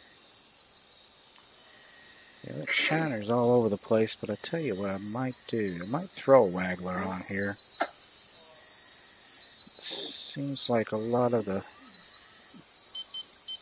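A fishing reel winds in line.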